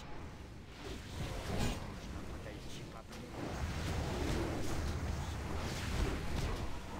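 Magic spells whoosh and crackle amid a noisy battle.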